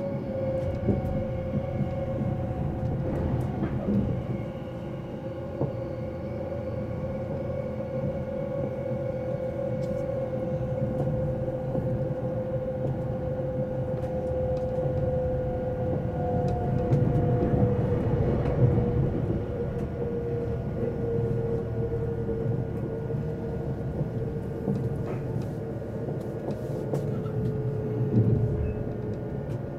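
A train hums with a steady motor whine.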